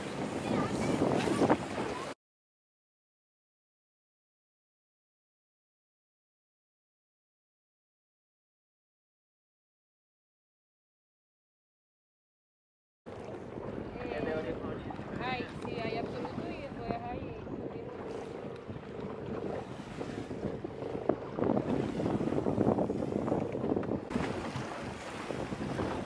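Waves slap and splash against small sailboat hulls.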